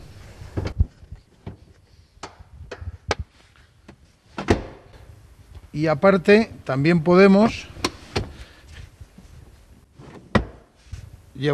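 A car seat clicks and thumps as it is adjusted.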